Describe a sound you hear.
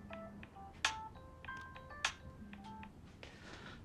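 A phone's keypad beeps in short tones.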